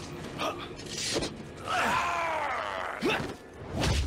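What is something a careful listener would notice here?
A gunshot bangs sharply.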